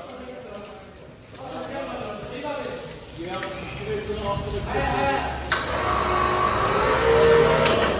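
Water gushes from a hose and splashes onto a wet floor.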